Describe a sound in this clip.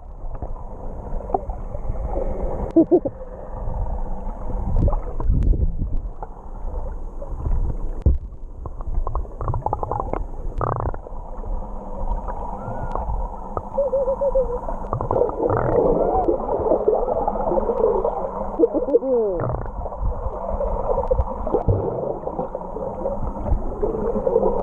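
Muffled underwater rumbling and sloshing continue throughout.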